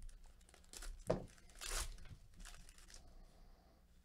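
A foil wrapper crinkles and tears as it is ripped open.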